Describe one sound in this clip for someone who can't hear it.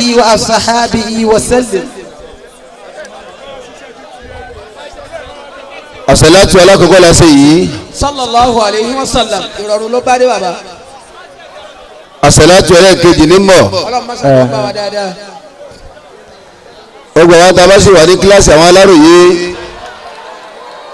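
An adult man speaks forcefully into a microphone through loudspeakers, in loud bursts with pauses.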